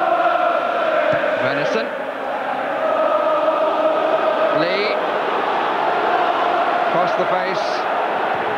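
A large stadium crowd chants and sings loudly throughout.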